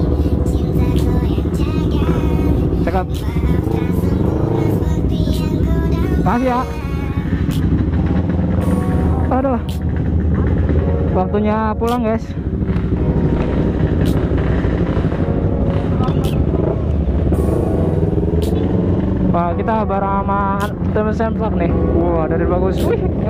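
A motorcycle engine revs up briefly.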